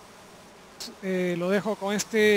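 A man speaks into a microphone.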